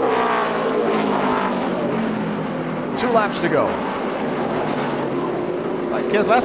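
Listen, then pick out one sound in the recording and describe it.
Race car engines roar loudly at high revs.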